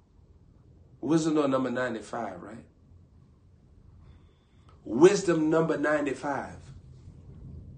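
A young man speaks close to a microphone in short, lively bursts.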